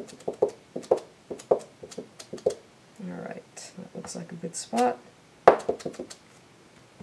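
A wooden stamp taps repeatedly on an ink pad.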